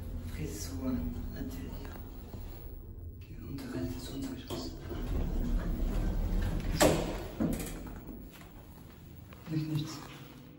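An elevator car hums as it moves.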